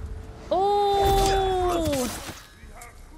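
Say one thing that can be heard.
A loud, drawn-out cry rings out.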